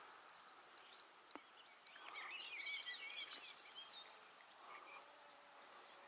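A hooked fish splashes at the water's surface close by.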